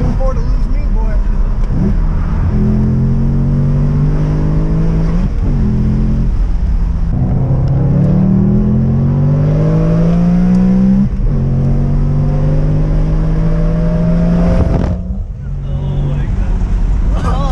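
A car engine hums loudly and revs up and down through the gears.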